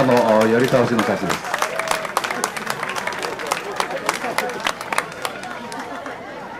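A crowd claps and cheers outdoors.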